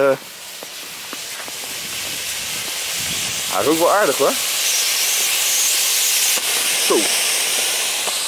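A smoke flare hisses steadily, growing louder.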